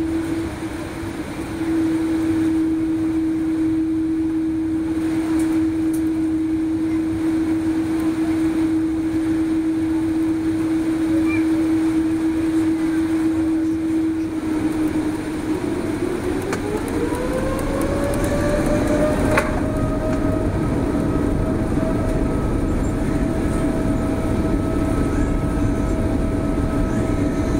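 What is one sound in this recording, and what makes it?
A jet engine roars steadily close by.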